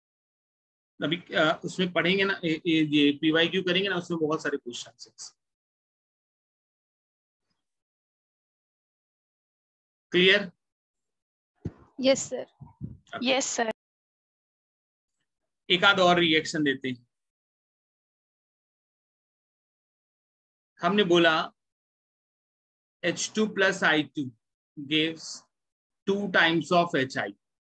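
A young man speaks calmly into a close microphone, in bursts with pauses.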